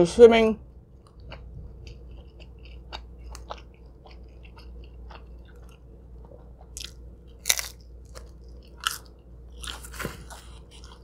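A young woman chews wetly with soft crunching sounds, close to a microphone.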